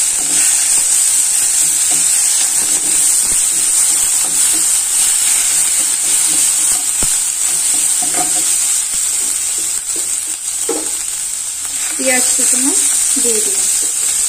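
A wooden spatula scrapes and stirs in a pan.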